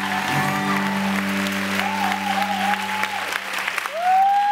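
An acoustic guitar rings out with a sustained chord.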